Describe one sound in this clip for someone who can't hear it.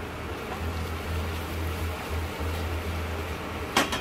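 A wooden spatula scrapes and stirs food in a metal pan.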